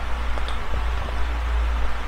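A young man drinks water with gulping sounds.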